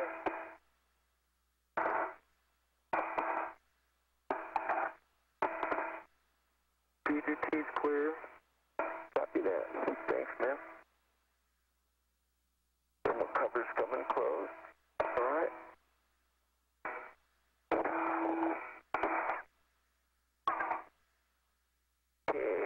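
A man speaks over a crackly radio link in short bursts.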